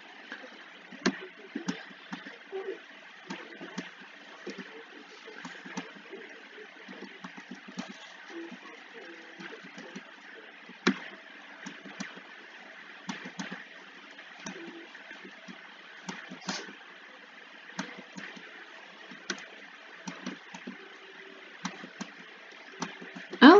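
Upbeat video game music with drums plays steadily.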